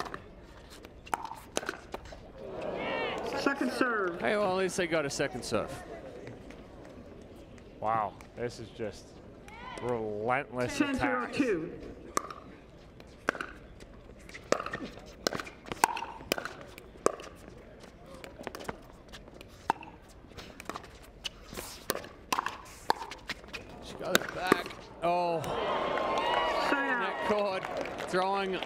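Paddles strike a plastic ball with sharp, hollow pops, back and forth in quick rallies.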